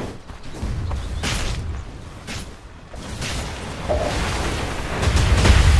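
Game characters clash with weapon hits.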